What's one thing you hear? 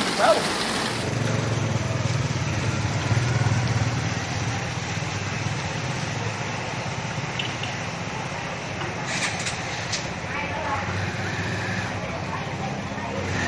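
A motorbike engine hums as it rides through floodwater.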